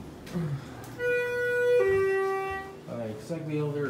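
An elevator chime rings two descending tones.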